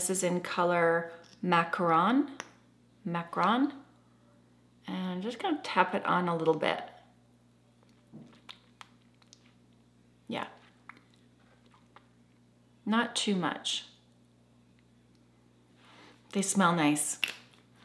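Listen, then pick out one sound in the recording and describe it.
A woman speaks calmly and close to a microphone, in short bursts with pauses.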